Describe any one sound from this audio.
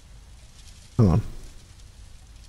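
A young man speaks into a close microphone.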